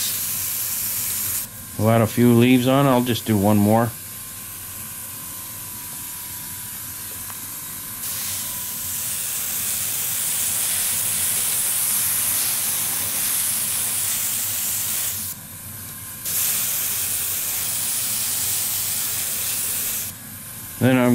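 An airbrush hisses in short and long bursts of spraying air.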